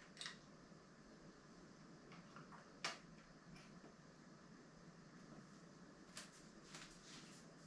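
Small plastic parts click and tap close by.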